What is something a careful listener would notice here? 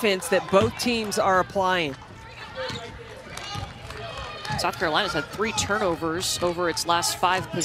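A basketball bounces on a hardwood floor in a large echoing hall.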